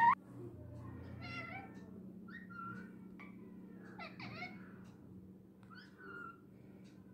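A parrot chatters and squawks softly in short bursts.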